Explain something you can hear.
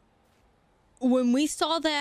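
A young woman exclaims loudly and with excitement into a close microphone.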